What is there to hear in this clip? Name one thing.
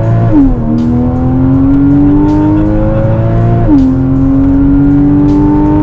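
A car engine revs hard, rising in pitch and dropping briefly as gears shift.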